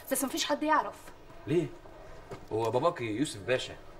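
A young man answers in a tense voice close by.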